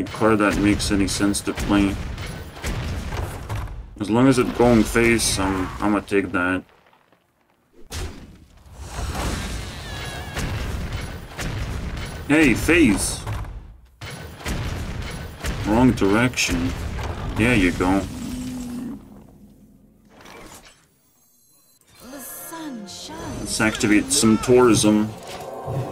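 Magic chimes and whooshes sound as game cards are played.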